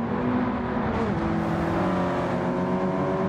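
A car engine whines up in pitch as it speeds past close by.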